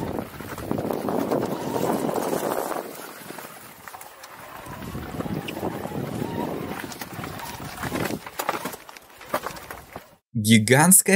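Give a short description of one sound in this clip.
Bicycle tyres rumble and crunch over a rocky path outdoors in wind.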